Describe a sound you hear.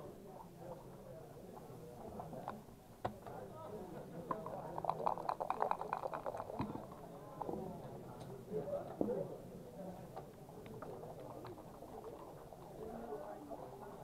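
Backgammon checkers click as a hand moves them on a board.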